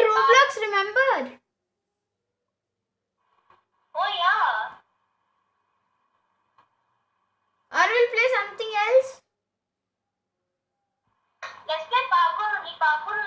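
A young boy talks with animation through a phone speaker, in short bursts.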